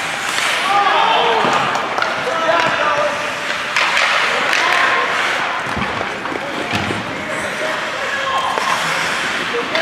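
A crowd of spectators cheers and shouts in an echoing rink.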